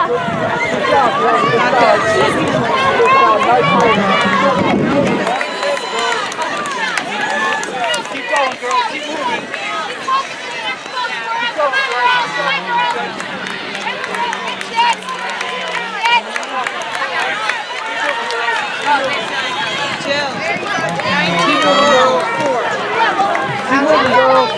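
A large crowd outdoors cheers and shouts encouragement.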